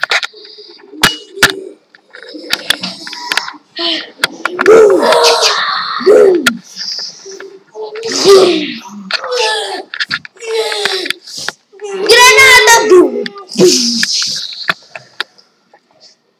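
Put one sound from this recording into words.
A young boy shouts and laughs excitedly close by.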